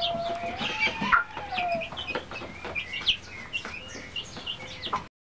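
Chicks peep and chirp close by.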